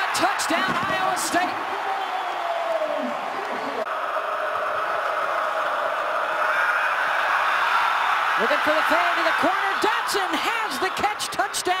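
A large stadium crowd roars and cheers, swelling louder as the play goes on.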